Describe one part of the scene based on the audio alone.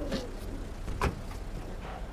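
A van door slams shut.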